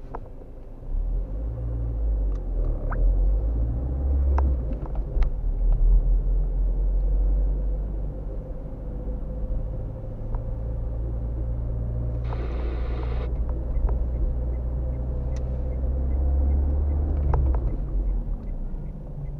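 Tyres roll over the road surface.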